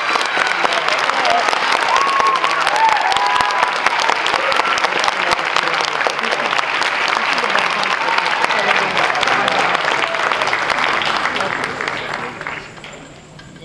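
An audience claps loudly in a large hall, then the applause fades away.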